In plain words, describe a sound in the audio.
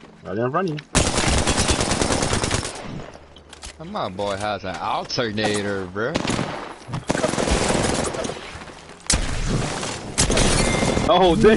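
Gunfire blasts in rapid bursts, loud and close.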